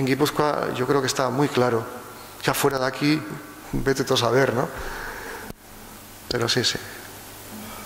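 A middle-aged man speaks with animation into a microphone, close by.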